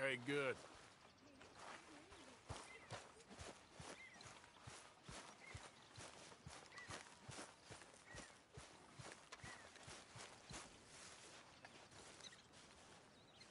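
Footsteps crunch through grass at a steady pace.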